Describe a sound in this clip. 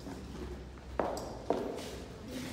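A microphone knocks against a table.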